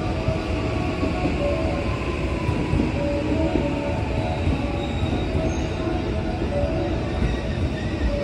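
A train rumbles slowly into a station.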